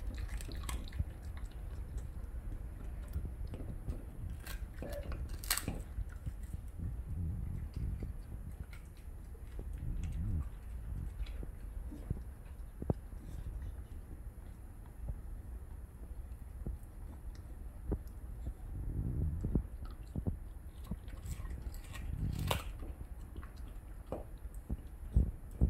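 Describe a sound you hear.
A dog gnaws and chews on a meaty bone, close by.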